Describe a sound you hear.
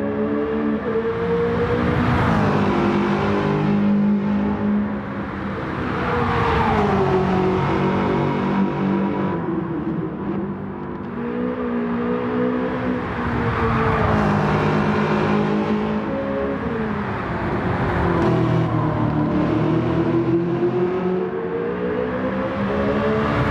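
A sports car engine roars at high revs, rising and falling in pitch as it shifts gears.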